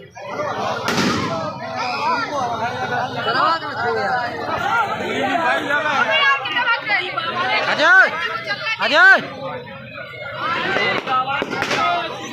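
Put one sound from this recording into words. A large crowd of men and boys shout and cheer loudly outdoors.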